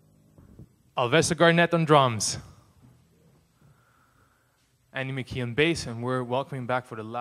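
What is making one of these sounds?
A man speaks calmly into a microphone, heard through loudspeakers in an echoing room.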